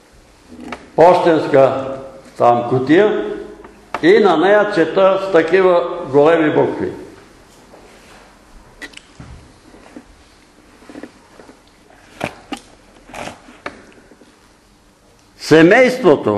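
An elderly man speaks with animation in a room with a slight echo.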